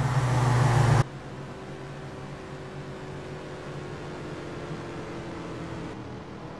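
Engines drone from a distance across open ground.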